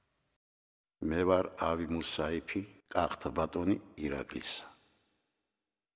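An elderly man speaks quietly and calmly, close by.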